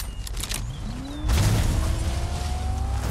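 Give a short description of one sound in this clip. A car engine starts and revs up.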